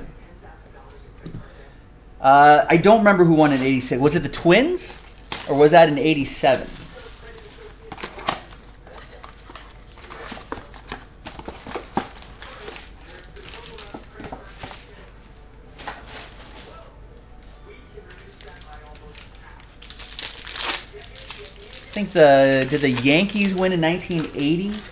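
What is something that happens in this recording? Card packs rustle and crinkle as hands handle them.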